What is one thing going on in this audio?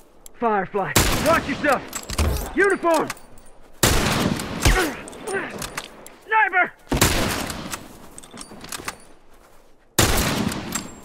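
A rifle fires loud, booming shots one at a time.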